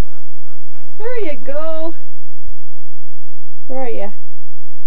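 A dog lets out high, drawn-out whining cries.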